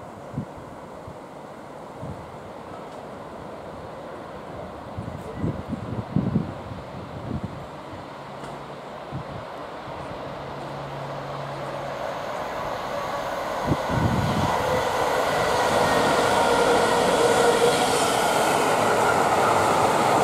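A diesel locomotive rumbles closer, growing steadily louder.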